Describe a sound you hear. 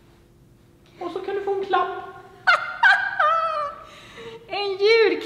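A young woman speaks cheerfully and with animation, close by.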